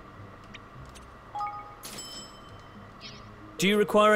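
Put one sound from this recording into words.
Soft menu chimes ring out briefly.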